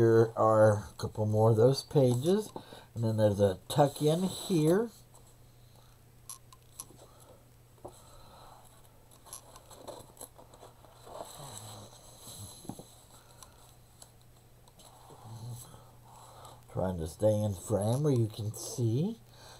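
Paper rustles softly as pages are handled.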